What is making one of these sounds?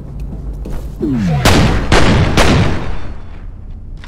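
Gunshots crack loudly in a short burst.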